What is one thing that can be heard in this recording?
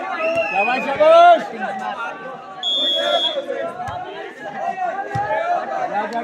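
A volleyball is struck with a dull thump.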